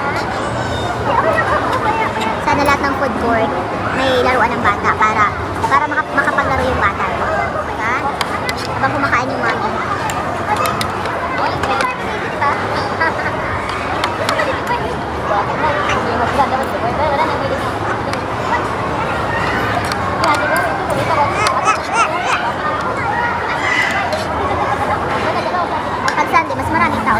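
A woman talks close by in a conversational tone.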